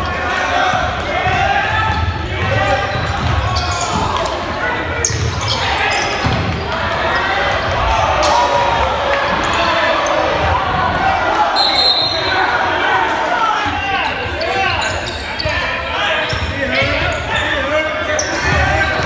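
A crowd chatters and cheers in a large echoing gym.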